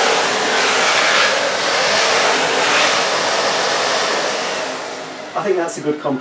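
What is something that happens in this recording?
A vacuum cleaner whooshes loudly and steadily, then winds down.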